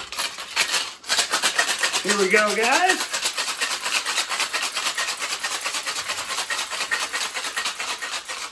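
Ice rattles rapidly in a cocktail shaker.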